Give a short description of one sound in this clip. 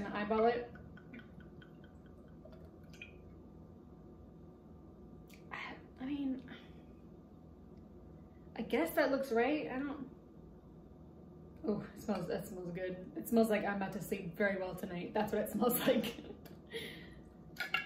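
Liquid glugs as it is poured from a bottle into a glass.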